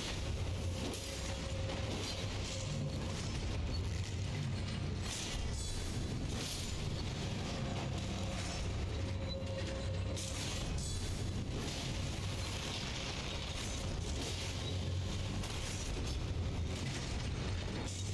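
Sword blades clash and slash.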